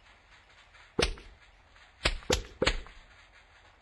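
Peas thud against a target in a game.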